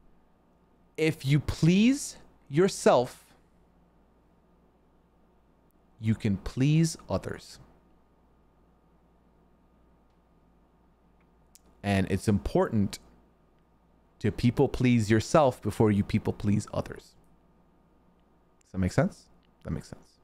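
A man speaks casually into a close microphone, in short bursts with pauses.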